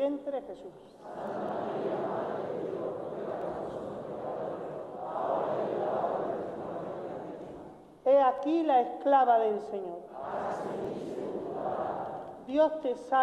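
A congregation recites together in an echoing church.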